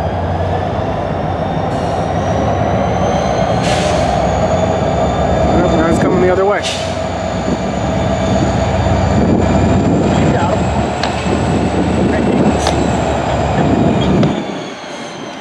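Diesel locomotive engines rumble loudly close by.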